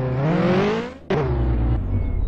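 A car crashes with a sharp thud.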